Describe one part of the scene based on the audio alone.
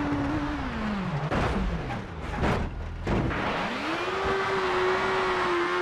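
Car tyres crunch and skid on loose gravel.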